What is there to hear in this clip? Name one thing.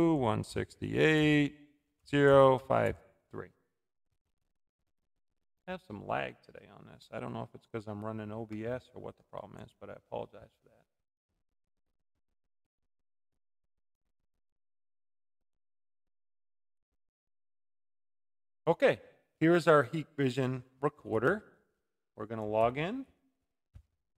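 A man talks calmly and close into a microphone, with pauses.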